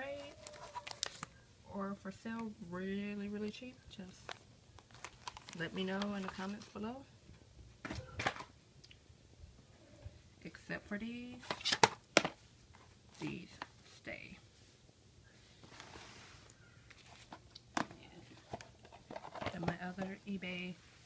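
Plastic cases clatter and click as they are handled and shuffled.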